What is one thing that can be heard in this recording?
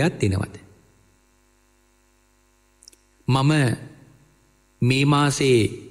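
A man speaks slowly and calmly, with long pauses.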